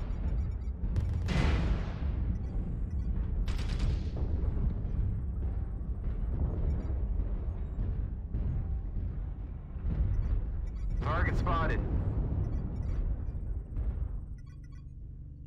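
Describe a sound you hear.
Heavy machinery rumbles and thuds steadily.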